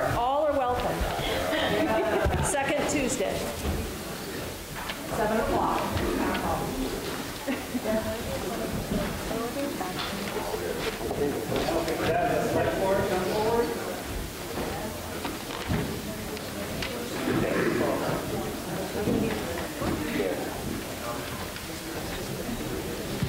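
A crowd murmurs quietly in an echoing hall.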